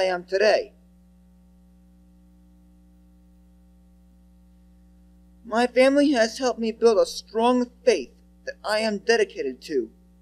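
A young man speaks into a microphone, with pauses.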